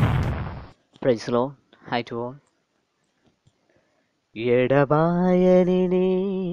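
A man sings.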